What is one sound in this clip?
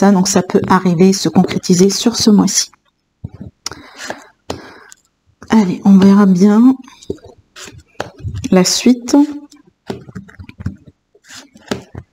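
Cards tap softly as they are laid down on a cloth.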